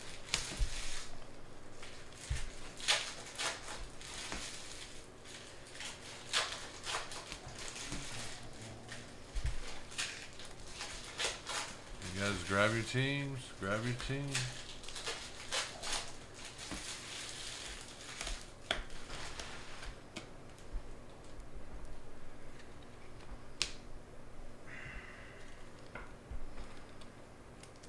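Trading cards rustle and click as hands shuffle through them.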